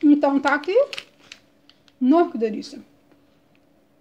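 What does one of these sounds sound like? A plastic wrapper crinkles softly.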